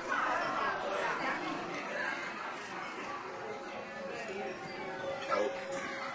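A crowd of men and women chatter in a busy room.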